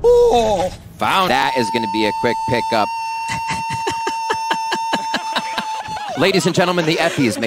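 Young men shout excitedly into headset microphones.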